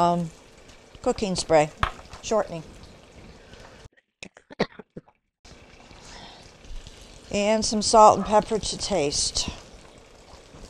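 An elderly woman speaks calmly into a close microphone.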